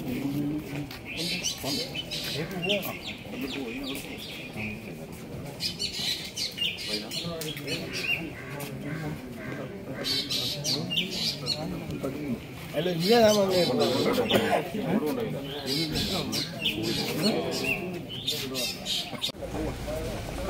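Several men talk outdoors close by, in a lively group.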